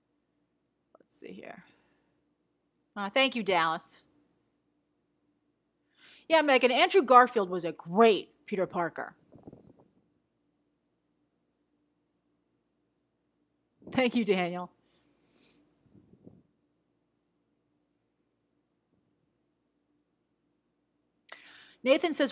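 A young woman speaks in short bursts close to a microphone, with pauses between.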